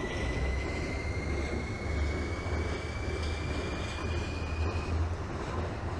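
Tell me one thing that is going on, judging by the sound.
The electric motors of an accelerating subway train whine, rising in pitch.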